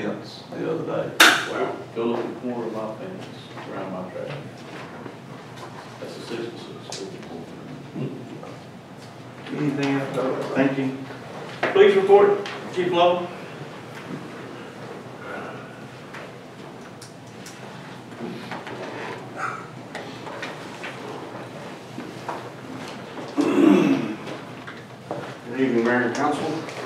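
Adult men talk calmly in turns, heard through a microphone in a room with a slight echo.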